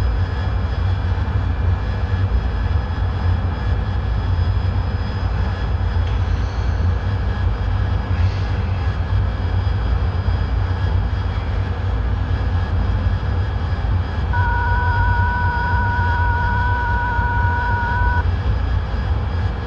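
A jet engine rumbles steadily with a deep, low roar.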